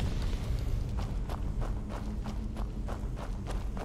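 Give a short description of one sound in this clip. Footsteps crunch on gravel at an even pace.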